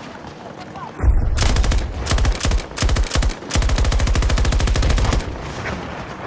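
A light machine gun fires in bursts.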